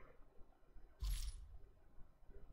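A deep whoosh sweeps through.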